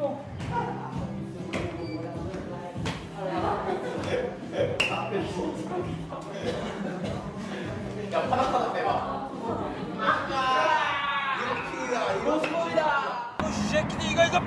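Young men laugh and shout excitedly nearby.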